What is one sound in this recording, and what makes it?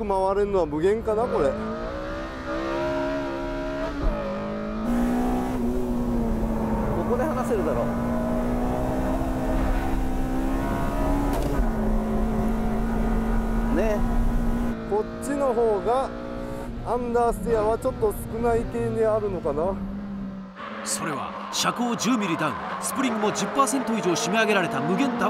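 A car engine roars steadily at high revs, heard from inside the car.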